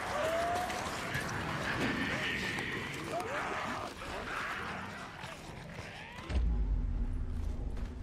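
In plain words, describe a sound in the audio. Footsteps crunch on stones and gravel.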